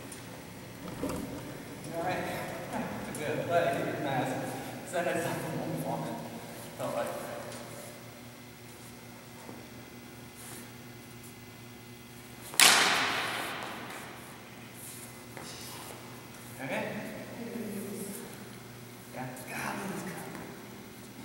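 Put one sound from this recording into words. A man talks calmly in a large echoing hall.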